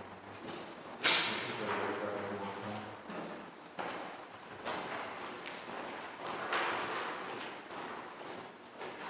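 Footsteps echo across a large hall.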